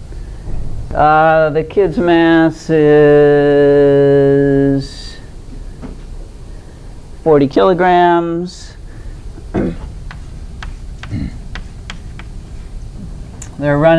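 An elderly woman speaks clearly to an audience, drawing out some words.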